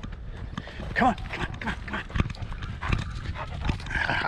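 A dog pants heavily up close.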